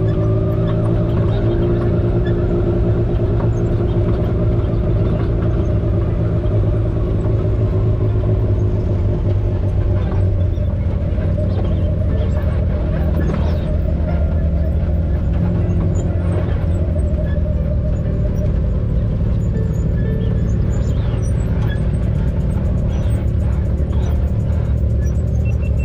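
Tyres crunch and bump over dirt and rocks.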